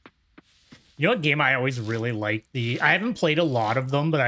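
A man talks animatedly and close to a microphone.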